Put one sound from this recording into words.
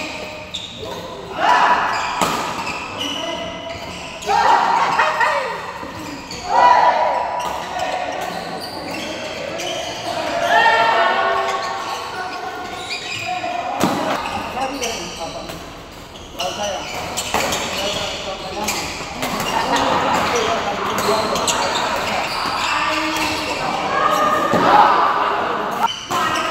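Men call out and talk with animation in a large echoing hall.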